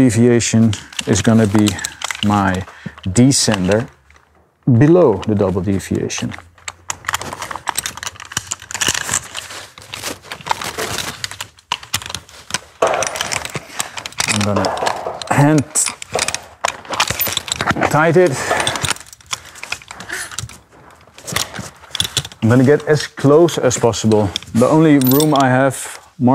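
Metal rope gear clinks and rattles.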